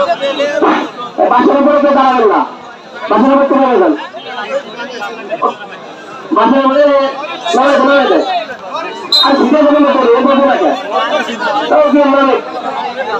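A man commentates loudly and with animation through a loudspeaker.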